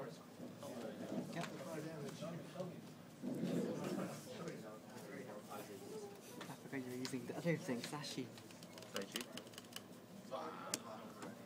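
Playing cards tap and slide softly on a cloth mat.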